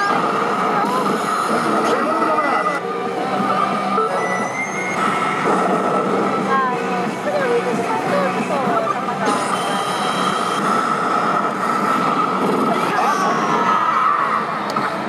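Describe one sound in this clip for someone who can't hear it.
A slot machine plays loud electronic music and jingles.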